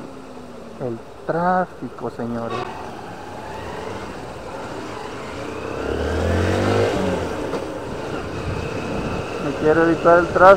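A motorcycle engine hums steadily and revs up briefly.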